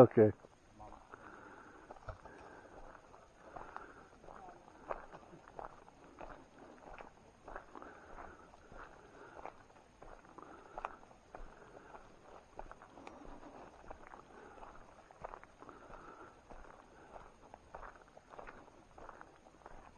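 Leafy undergrowth rustles and swishes as someone pushes through it.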